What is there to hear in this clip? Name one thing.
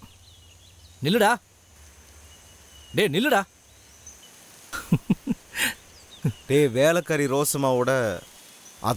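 A young man calls out and talks with animation, close by.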